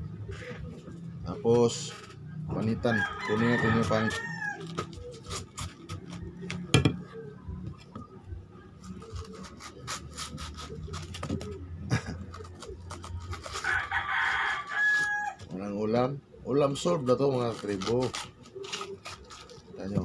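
A knife scrapes and shaves bark off a stalk.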